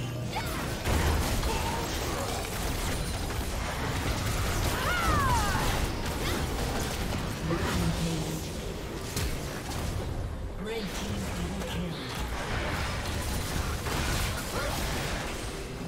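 Game weapons clash and strike in quick bursts.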